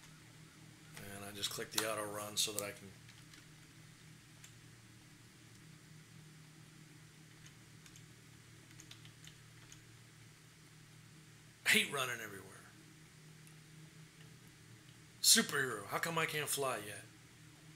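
An older man speaks calmly and closely into a microphone, in short bursts.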